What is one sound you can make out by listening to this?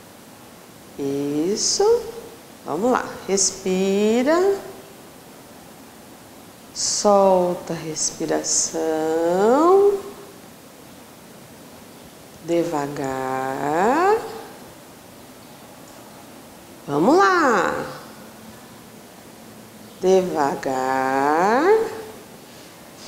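A woman speaks calmly and clearly, as if giving instructions, in bursts with pauses.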